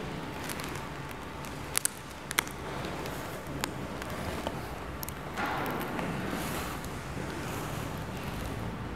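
A man reads aloud calmly through a microphone in an echoing hall.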